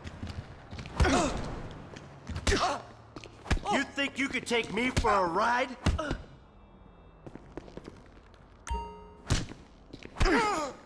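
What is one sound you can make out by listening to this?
A man grunts and groans with effort.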